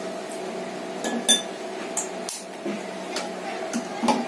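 A bottle clicks and knocks against a hard surface.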